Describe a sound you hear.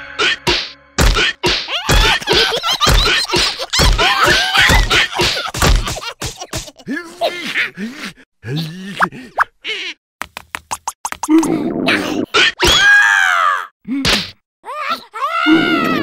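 Cartoon creatures babble and squeal in high, squeaky voices.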